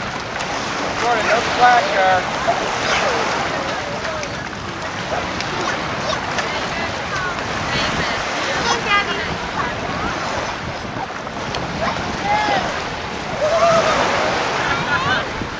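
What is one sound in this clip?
A boy calls out and chatters nearby.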